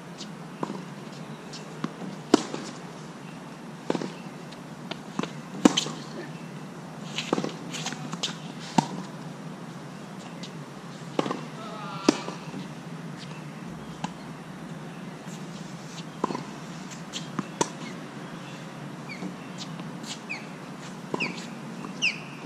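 Rackets strike a tennis ball back and forth, with sharp pops.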